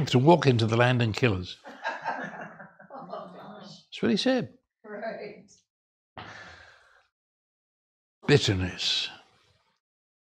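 An elderly man speaks calmly and thoughtfully into a close microphone, with pauses.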